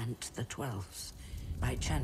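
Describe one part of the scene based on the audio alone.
A campfire crackles and hisses.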